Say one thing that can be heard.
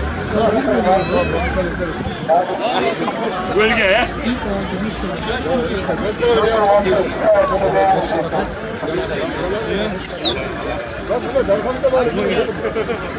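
A crowd of men and women talk and shout close by, outdoors.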